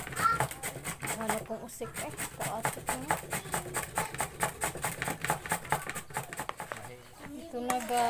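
A grater rasps rapidly back and forth.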